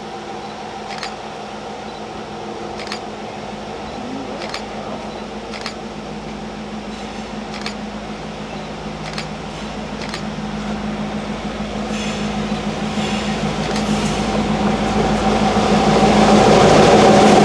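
Train wheels clack and squeal on the rails as the train passes close by.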